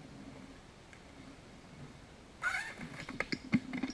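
Skateboard wheels roll on a concrete ramp.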